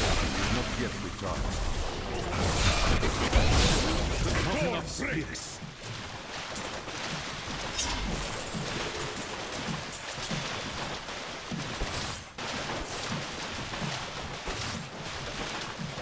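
Monsters shriek and groan as they are struck down.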